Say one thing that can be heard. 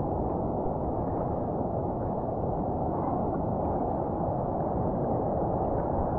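Water sloshes and laps steadily close by.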